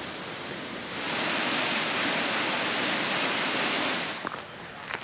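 A waterfall rushes and splashes.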